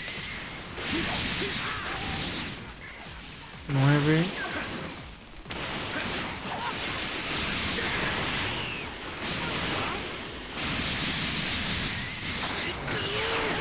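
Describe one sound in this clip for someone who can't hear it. Energy blasts whoosh and crackle in a fast, noisy fight.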